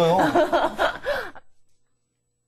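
A young woman laughs loudly and happily.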